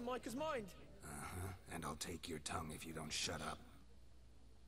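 A man with a low, gruff voice speaks threateningly, close by.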